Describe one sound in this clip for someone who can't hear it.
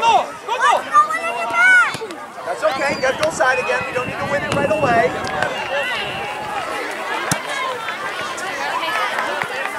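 Children shout and call out excitedly across an open field.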